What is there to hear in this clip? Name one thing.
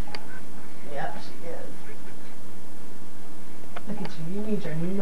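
A woman speaks softly and playfully to a baby close by.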